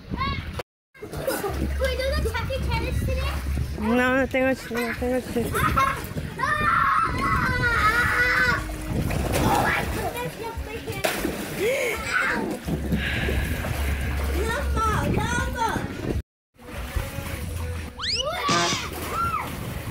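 Water splashes loudly in a pool.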